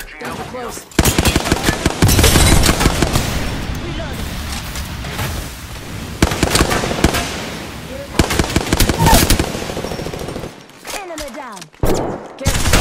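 Rapid gunfire rattles loudly in quick bursts.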